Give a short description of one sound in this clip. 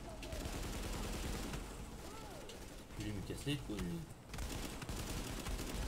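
Gunfire crackles in bursts.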